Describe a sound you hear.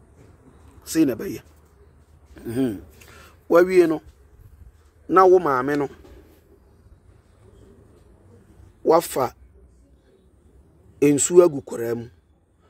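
A man speaks in short, calm phrases close to a microphone.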